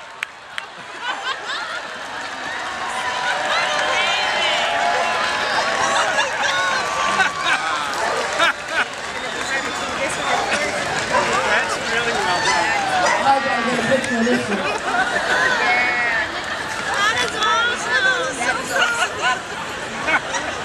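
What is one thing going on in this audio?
A large crowd chatters and calls out outdoors.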